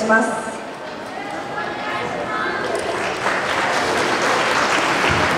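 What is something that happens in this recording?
Music plays through loudspeakers in a large, echoing space.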